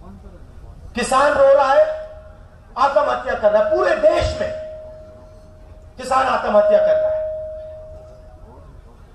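A man speaks forcefully into a microphone in short bursts, his voice echoing over loudspeakers outdoors.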